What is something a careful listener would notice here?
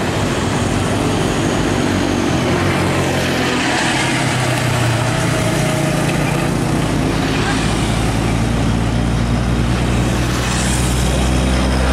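A heavy truck's diesel engine rumbles deeply as it approaches.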